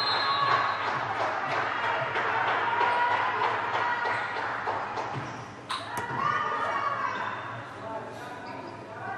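Young women shout and call out in a large echoing hall.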